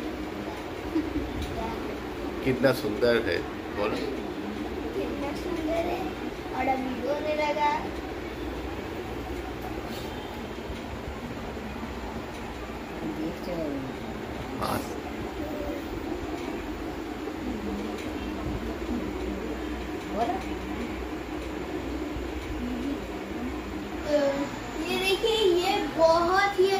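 A young boy talks cheerfully close by.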